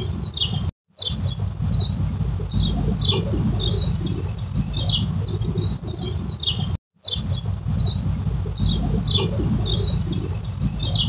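A small bird chirps in short, high bursts.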